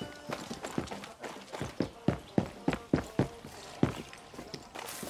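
Quick footsteps tap on hard ground.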